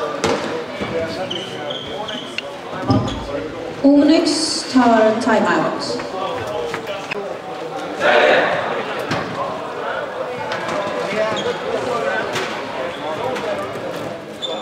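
Sticks clatter and a ball knocks on the floor.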